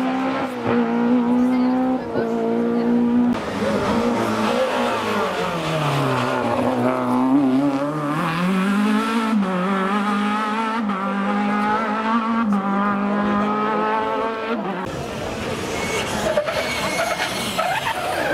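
A rally car engine roars close by, revving up and down as it shifts gears.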